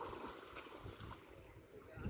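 A swimmer splashes through water nearby.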